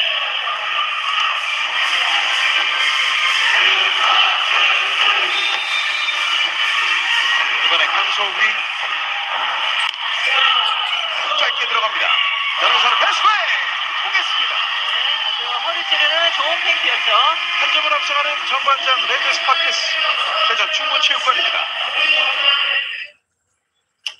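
A large indoor crowd cheers and chants loudly in an echoing arena.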